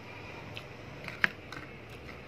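A plastic container clicks and crinkles sharply.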